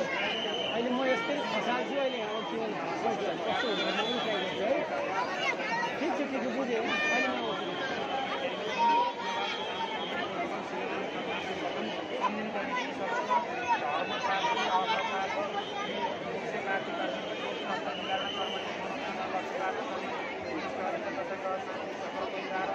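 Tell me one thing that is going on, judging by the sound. Men and women in a crowd shout and cheer.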